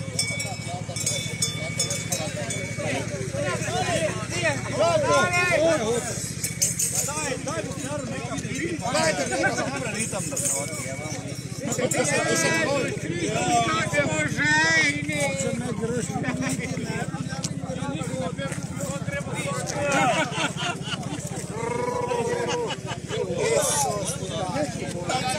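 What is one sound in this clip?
Men and women chatter and call out nearby.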